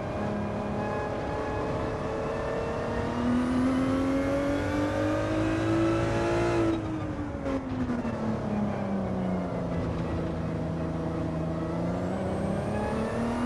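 A racing car engine roars, rising in pitch as it speeds up and dropping as it slows for a corner.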